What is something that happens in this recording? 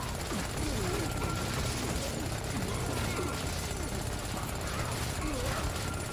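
Game weapons fire and clash in quick bursts.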